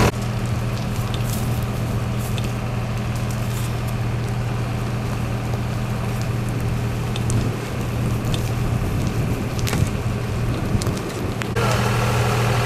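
A fire crackles in dry grass.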